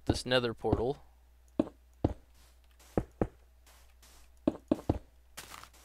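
Stone blocks are set down with short, dull knocks.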